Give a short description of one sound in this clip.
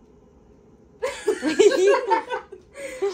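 A young woman laughs loudly and excitedly close by.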